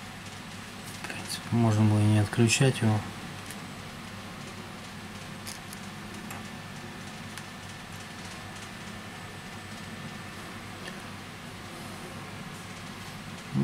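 Plastic clamps click and tap against a phone.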